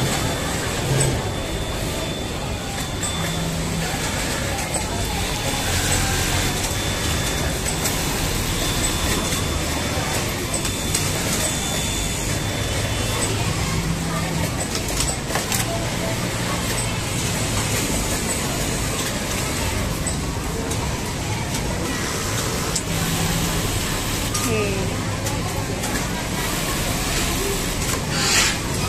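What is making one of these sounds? A sewing machine whirs in short bursts close by.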